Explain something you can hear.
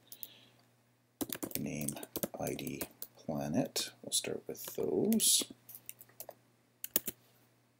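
Keys click on a computer keyboard as someone types.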